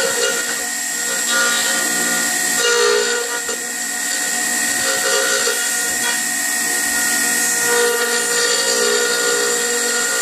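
A router motor whines steadily at high speed.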